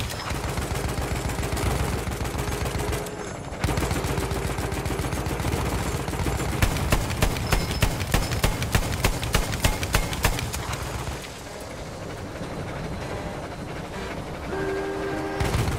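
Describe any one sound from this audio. A tank engine rumbles deeply and steadily.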